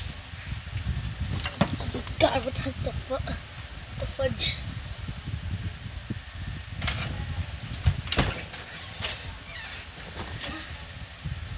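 A person stumbles and thumps against a mattress close by.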